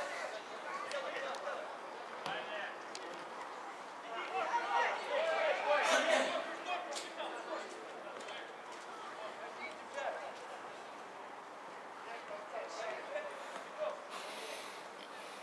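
Men shout to each other across an open outdoor pitch.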